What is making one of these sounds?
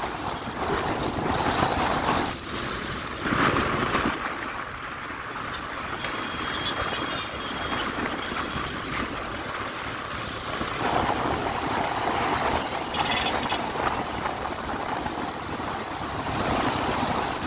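Motorcycle engines hum and buzz nearby in steady traffic.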